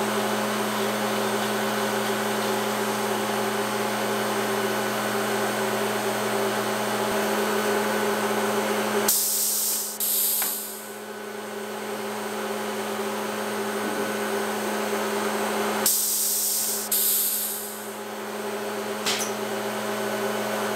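A woodworking machine hums steadily.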